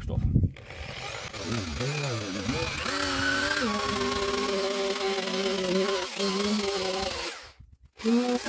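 A spinning rubber wheel grinds against a car panel.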